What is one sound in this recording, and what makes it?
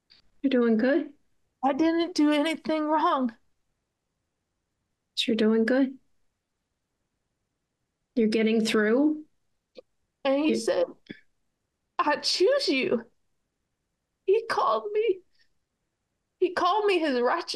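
A middle-aged woman speaks thoughtfully in short phrases over an online call, with pauses between them.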